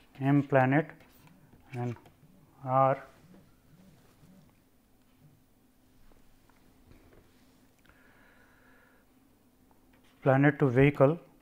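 An elderly man speaks calmly and slowly into a close microphone, with long pauses.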